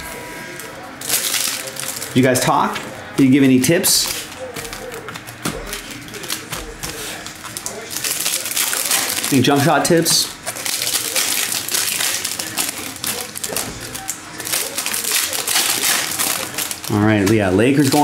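Foil card wrappers crinkle and tear as they are opened.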